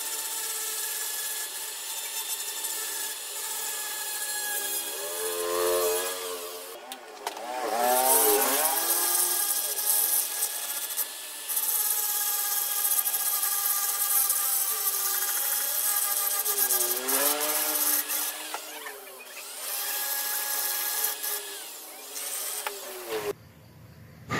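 A rotary die grinder whines as it grinds an aluminium cylinder head.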